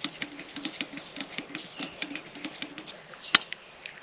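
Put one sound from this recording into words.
A metal press plunger scrapes and clicks in rapid strokes.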